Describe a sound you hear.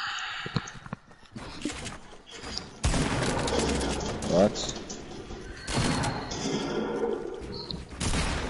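Wooden panels snap into place with quick knocks.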